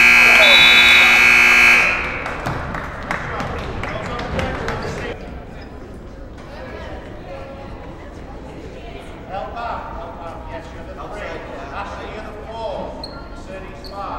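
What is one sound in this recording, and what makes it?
Spectators chatter in a large echoing gym.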